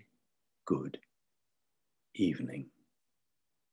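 An elderly man speaks briefly and calmly, close by.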